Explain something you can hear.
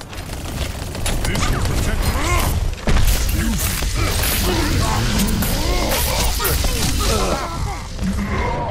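Electric crackling and zapping bursts loudly.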